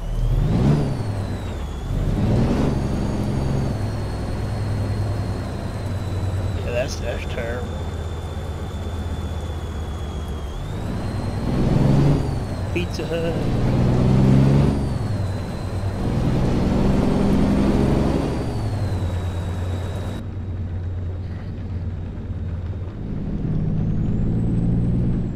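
A heavy truck engine rumbles steadily and revs up and down through the gears.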